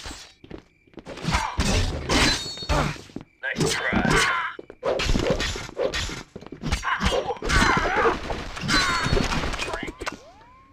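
Metal blades clash and strike in a fast fight.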